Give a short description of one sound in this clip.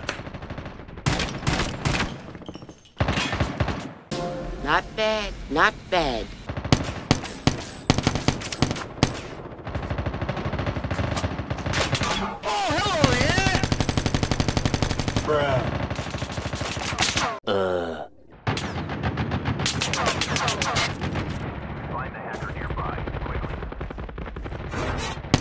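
Rapid gunfire rattles in bursts.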